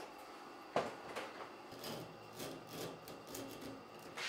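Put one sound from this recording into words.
A man scrapes at a floor with a tool.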